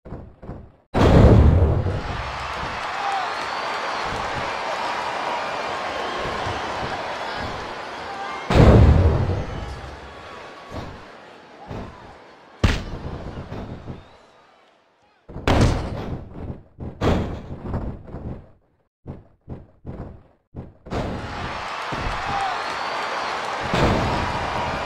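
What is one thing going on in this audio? Heavy bodies slam hard onto a wrestling mat.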